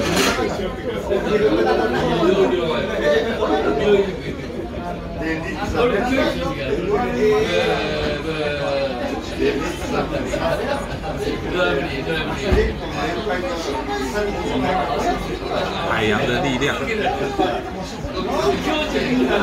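Diners chatter in the background.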